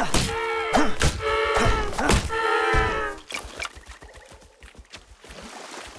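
Water splashes as someone wades through a stream.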